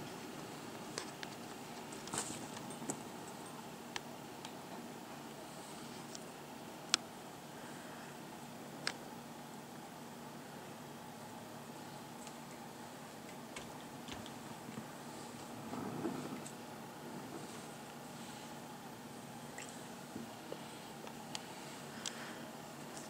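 Hands handle plastic mounting parts, with light clicks and knocks.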